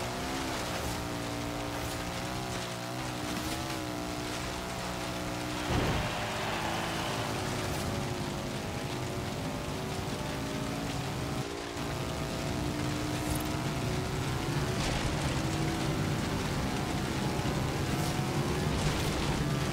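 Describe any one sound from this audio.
An engine revs and hums steadily, rising and falling in pitch.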